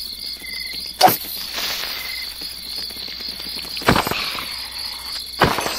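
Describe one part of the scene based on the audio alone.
A sword strikes a creature with sharp thwacks.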